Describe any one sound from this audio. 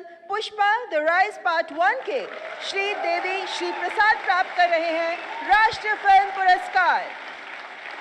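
A woman announces through a microphone.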